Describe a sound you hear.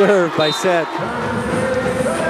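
A large crowd cheers in an echoing hall.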